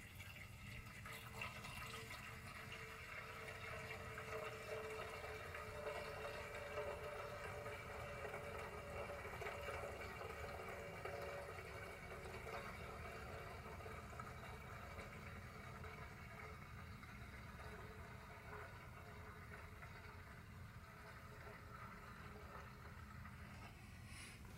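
Fuel pours and gurgles into a small tank.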